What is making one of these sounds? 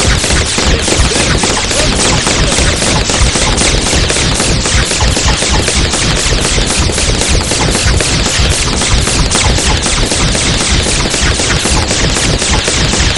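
Cartoon game attack sound effects fire in a rapid, dense barrage.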